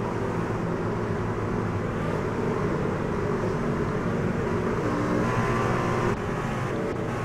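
Racing engines roar steadily at high revs.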